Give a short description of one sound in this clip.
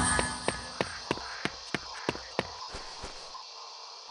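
Footsteps tap steadily down stone steps.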